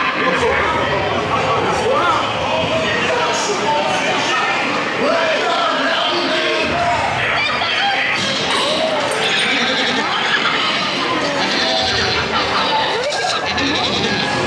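Several men's voices sing and shout loudly over loudspeakers.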